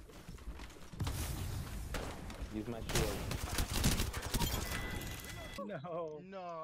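Rapid bursts of automatic rifle fire crack out.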